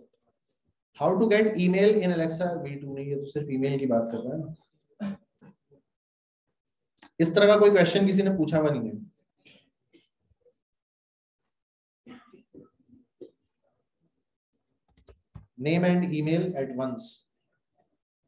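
A young man speaks calmly into a close microphone, in short bursts.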